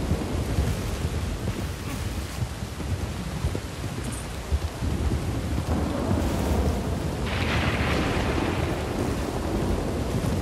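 Horse hooves thud steadily on rough ground.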